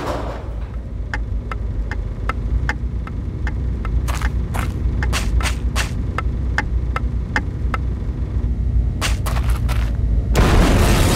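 An alarm clock ticks steadily.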